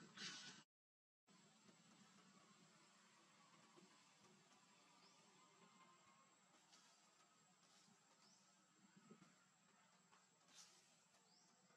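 A small monkey scampers through rustling leaves and undergrowth.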